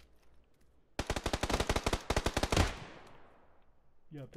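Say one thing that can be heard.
Automatic gunfire rattles in a rapid burst, then echoes away.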